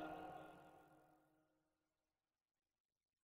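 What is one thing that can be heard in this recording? A ukulele chord rings out and slowly fades away.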